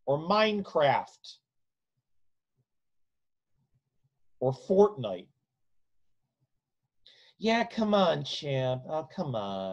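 A middle-aged man speaks with animation, close to a microphone, pausing between phrases.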